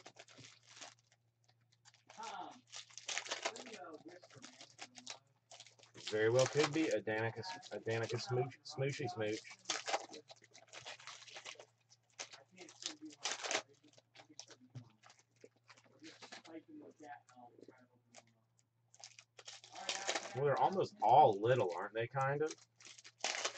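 Foil card wrappers crinkle and tear as they are pulled open.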